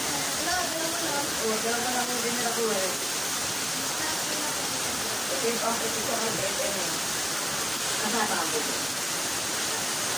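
Scissors snip hair.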